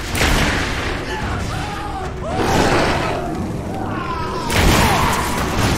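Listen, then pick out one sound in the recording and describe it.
Creatures screech and shriek.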